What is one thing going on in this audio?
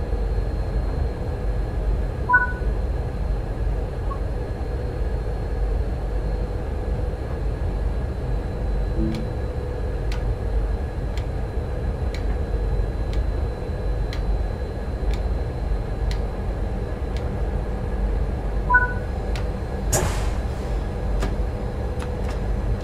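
A train's engine hums steadily at low pitch.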